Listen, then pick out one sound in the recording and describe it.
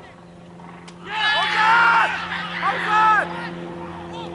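Several men shout loudly in an appeal outdoors.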